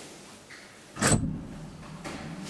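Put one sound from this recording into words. An elevator door thuds shut.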